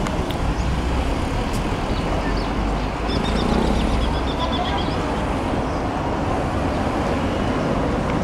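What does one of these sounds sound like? A crowd of spectators chatters nearby outdoors.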